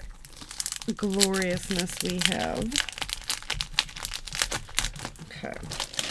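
A plastic sleeve crinkles as hands pull at it.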